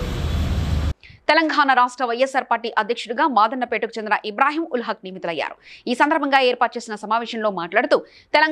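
A middle-aged woman reads out news steadily and clearly, close to a microphone.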